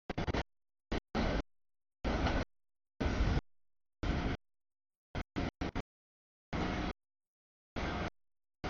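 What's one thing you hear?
A freight train rumbles and clatters past nearby.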